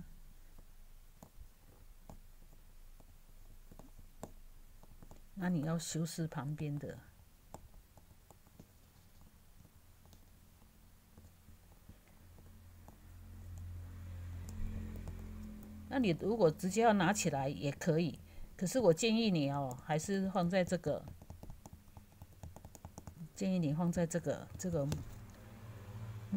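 A paintbrush dabs and brushes softly on paper.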